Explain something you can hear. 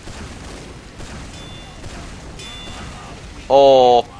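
A shotgun fires several shots.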